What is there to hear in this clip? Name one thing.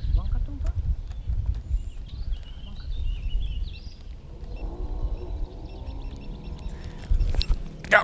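A fishing reel clicks and whirs as it is cranked.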